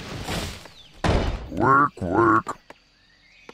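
A building is placed with a short thud and rumble.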